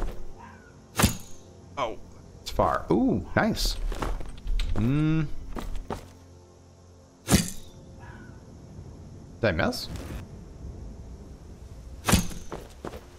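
A bowstring twangs sharply as an arrow is loosed.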